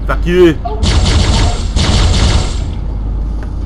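An energy weapon fires a rapid burst of buzzing shots.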